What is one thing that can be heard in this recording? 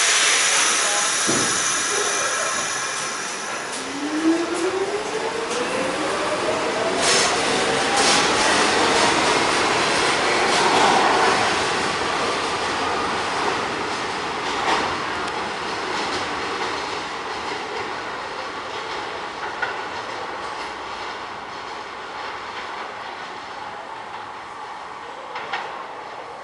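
A subway train rumbles along the tracks in an echoing station and slowly fades away.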